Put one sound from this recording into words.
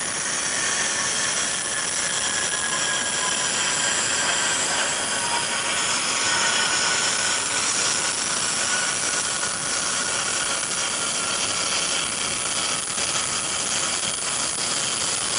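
A large jet aircraft roars loudly as it flies low overhead.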